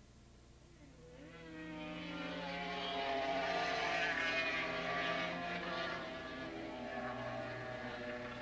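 Several motorcycle engines roar and whine as they race by, rising in pitch.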